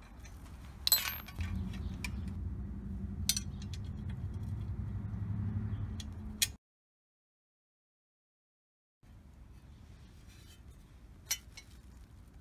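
Metal parts clink and knock close by.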